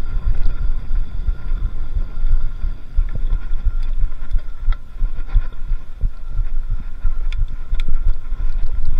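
A bicycle's parts rattle and clatter over bumps.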